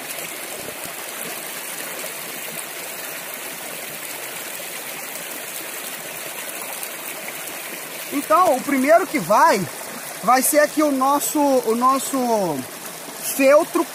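Shallow water flows and splashes steadily over rocks.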